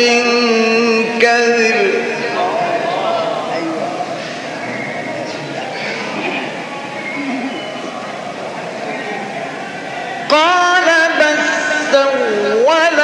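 A man chants in long, drawn-out melodic phrases with a reverberant echo.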